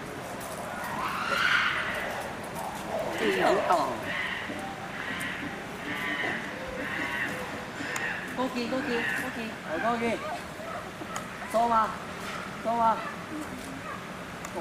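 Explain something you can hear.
A chimpanzee walks softly across grass.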